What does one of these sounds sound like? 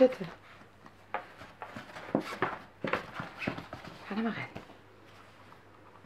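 A small dog shifts about inside a soft carrier, rustling and scuffing its fabric.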